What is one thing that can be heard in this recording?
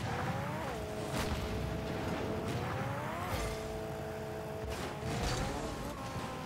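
A car engine hums, rising in pitch and dropping again.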